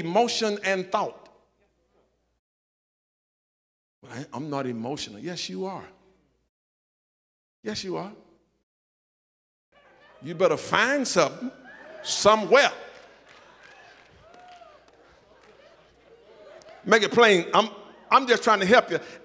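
An elderly man preaches with animation into a microphone, pausing between phrases, in a large echoing hall.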